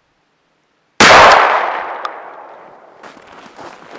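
A shotgun fires a single loud shot that echoes away outdoors.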